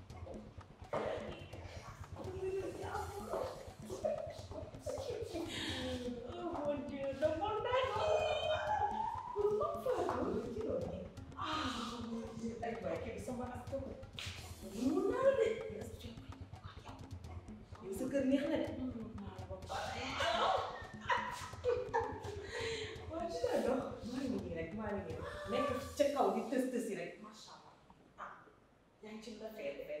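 Women talk and greet each other with animation nearby.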